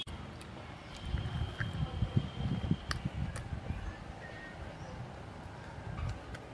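A young woman chews food noisily close by.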